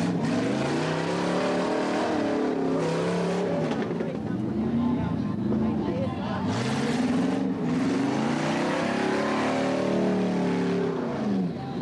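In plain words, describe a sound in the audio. Tyres screech on tarmac as a car spins.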